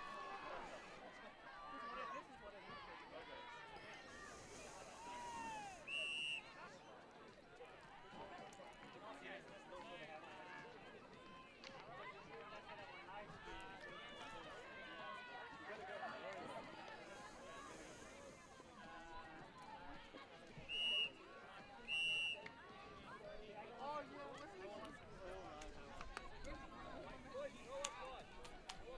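Young men and women call out to each other across an open field.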